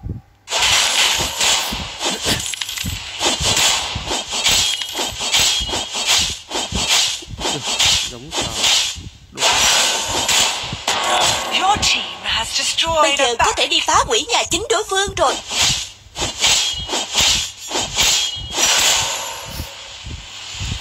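Game characters clash with rapid magical hits and strikes.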